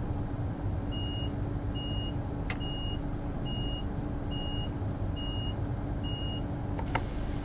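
A warning tone beeps repeatedly at an even pace.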